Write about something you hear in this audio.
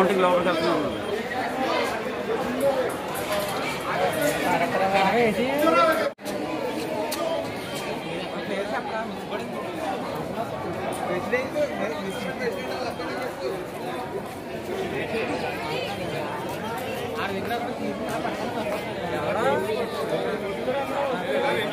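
A crowd of men and women chatters close by.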